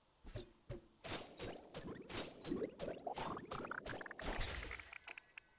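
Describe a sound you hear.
A glassy crystal shatters with a burst of sharp, sparkling cracks.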